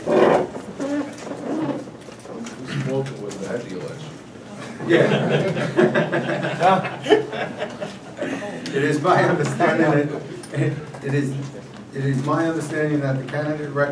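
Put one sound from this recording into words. A man speaks calmly into a microphone in a room with a slight echo.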